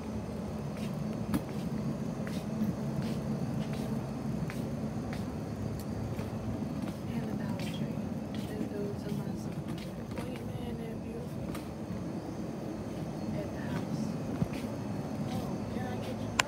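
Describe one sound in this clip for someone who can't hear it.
A shopping cart rolls and rattles over a hard floor.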